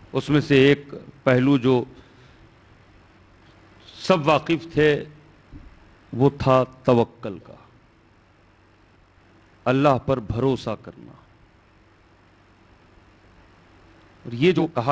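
A man speaks with emphasis into a close microphone, in bursts with pauses.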